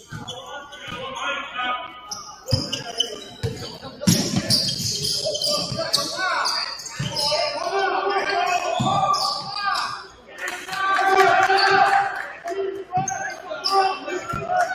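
A basketball bounces on a hardwood floor in a large echoing gym.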